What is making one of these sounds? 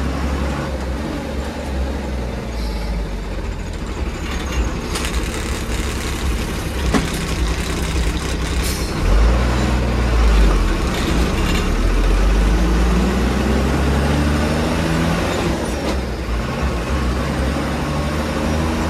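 A heavy engine rumbles steadily, rising and falling in pitch as it labours.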